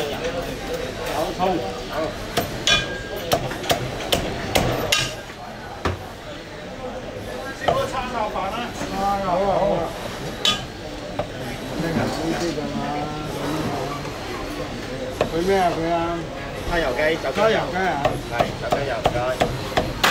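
A cleaver chops sharply on a wooden block.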